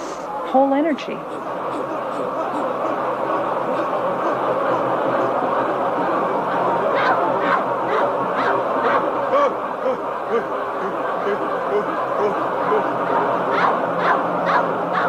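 A large crowd shouts and cheers in a big echoing hall.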